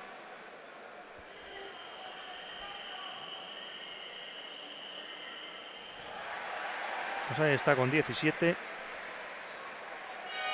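A large crowd murmurs in a big echoing arena.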